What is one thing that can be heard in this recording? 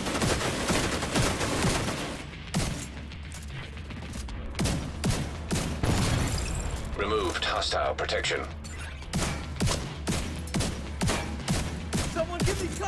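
Rifle shots fire in quick bursts, one after another.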